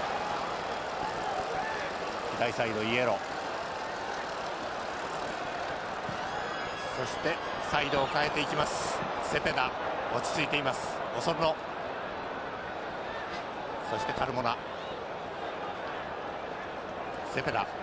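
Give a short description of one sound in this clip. A large stadium crowd roars and murmurs steadily outdoors.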